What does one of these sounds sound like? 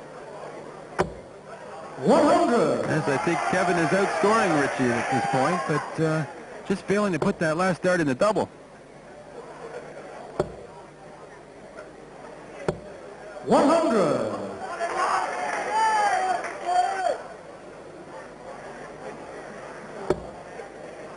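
Darts thud sharply into a board, one at a time.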